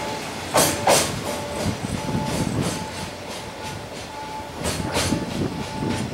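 A freight train rolls away into the distance and fades.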